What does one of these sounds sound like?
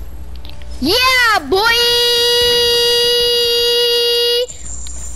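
A bright victory fanfare rings out and holds its notes.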